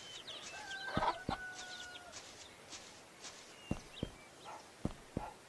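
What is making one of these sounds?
Footsteps tap along a path.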